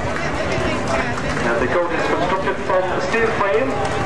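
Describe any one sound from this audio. A horse's hooves clop on the road.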